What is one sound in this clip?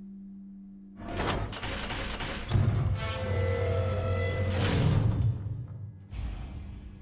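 A heavy metal door grinds and rumbles open.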